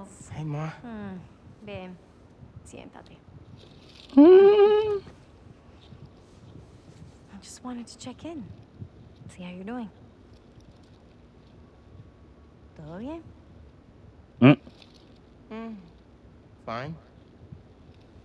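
A young man speaks calmly and warmly.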